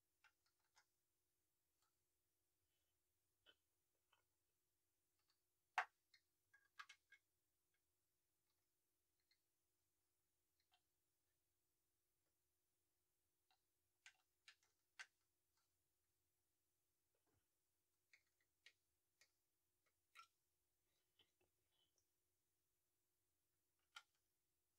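Small plastic toy pieces click and tap as they are moved and snapped into place.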